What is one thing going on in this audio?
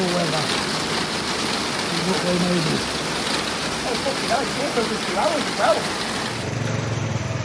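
Rain patters steadily on a pool of water.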